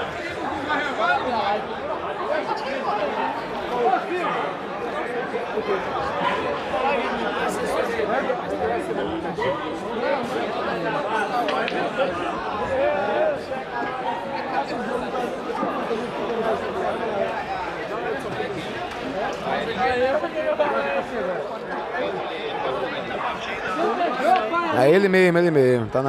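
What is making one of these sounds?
Pool balls click together on a table.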